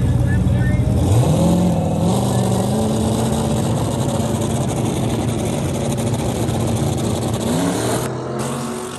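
A truck engine revs up sharply.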